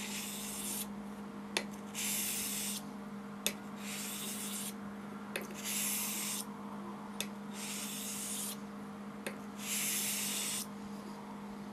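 A razor blade scrapes in strokes along a wet whetstone.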